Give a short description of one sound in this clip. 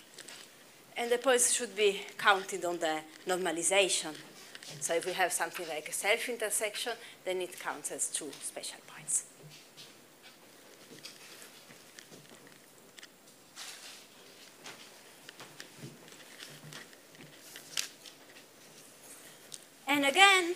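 A young woman lectures calmly, heard in a room with a slight echo.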